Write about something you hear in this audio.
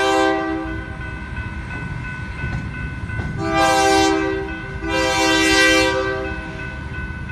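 A train horn blows loudly in long blasts.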